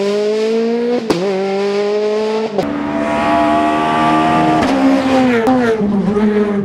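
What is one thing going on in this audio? Tyres hum on asphalt.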